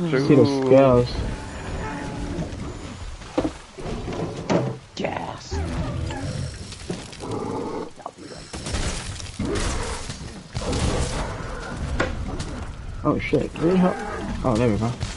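Heavy blades slash and clang repeatedly.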